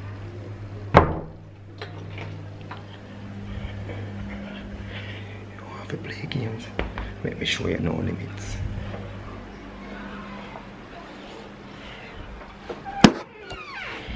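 Loud knocks and bumps sound against the phone.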